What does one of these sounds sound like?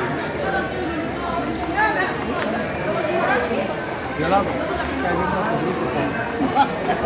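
A crowd of adults chatters in a busy echoing indoor space.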